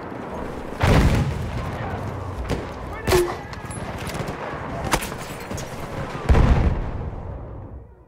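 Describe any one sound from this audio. Explosions boom nearby in a game battle.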